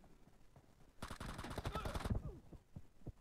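Rapid gunfire rattles in a burst.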